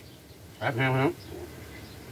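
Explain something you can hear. A man speaks briefly and calmly, close by.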